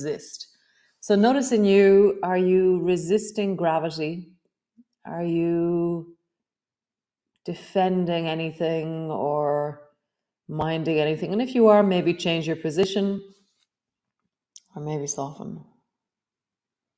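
A woman speaks calmly and softly into a close microphone, with pauses.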